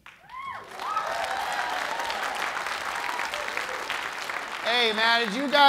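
A crowd claps and cheers in a large hall.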